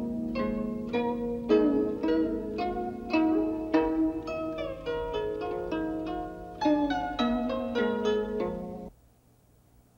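A plucked zither plays a slow melody.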